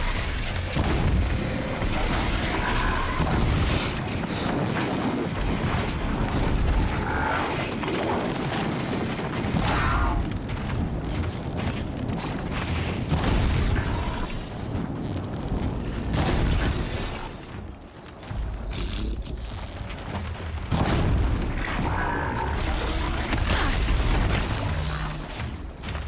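A bowstring twangs as arrows are loosed again and again.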